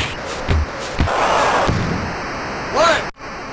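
A crowd cheers loudly as a boxer is knocked down.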